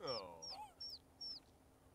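A hen clucks.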